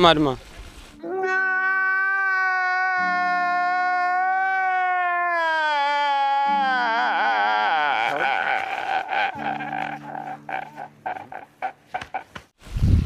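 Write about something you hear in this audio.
A man wails and sobs loudly.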